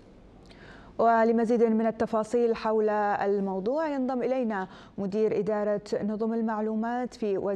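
A woman speaks calmly and clearly into a microphone, reading out.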